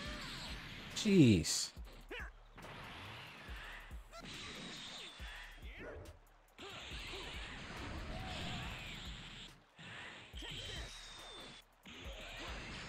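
An energy blast bursts with a loud boom.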